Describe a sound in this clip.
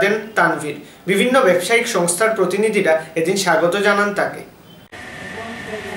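A young man speaks clearly and evenly into a microphone, like a news presenter.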